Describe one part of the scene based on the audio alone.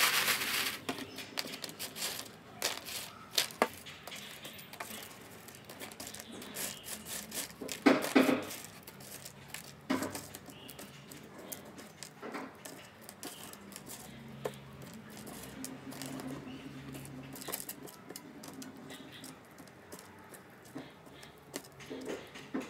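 Fingers rustle and scrape dried peel pieces across a woven tray.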